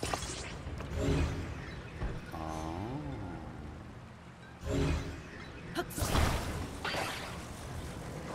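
A magical shimmering effect hums and whooshes as objects are grabbed and joined together.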